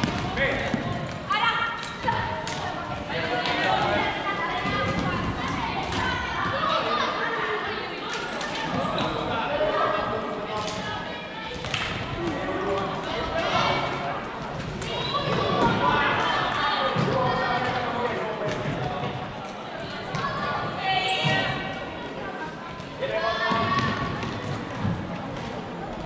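Players shout and call to each other in a large echoing hall.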